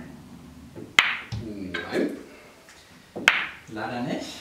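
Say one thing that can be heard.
Billiard balls click together sharply.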